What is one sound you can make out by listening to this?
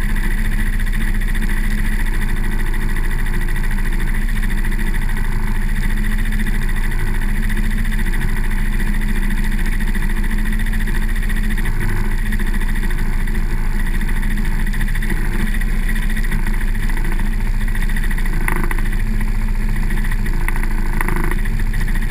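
An ATV engine drones while driving along a dirt track.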